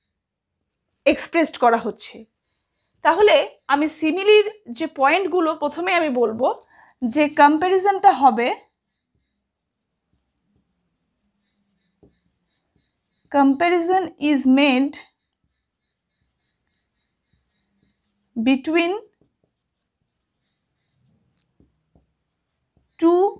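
A woman speaks calmly and clearly close by, explaining.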